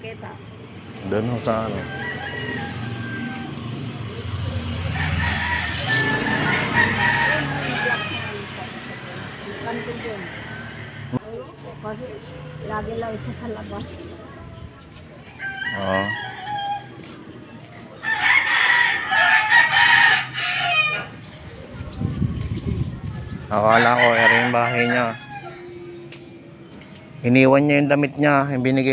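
An elderly woman talks nearby in a calm voice.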